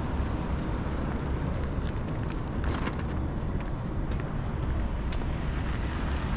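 A scooter rides past on a nearby road.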